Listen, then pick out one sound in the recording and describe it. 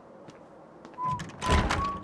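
A man's footsteps climb stone steps.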